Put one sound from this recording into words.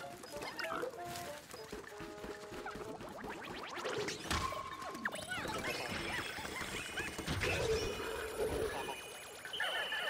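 Small game creatures chirp and squeak in quick bursts.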